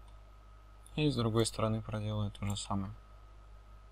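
A young man speaks calmly and briefly into a close microphone.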